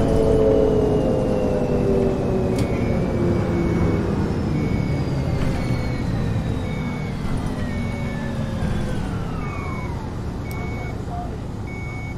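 A bus engine hums steadily and winds down as the bus slows.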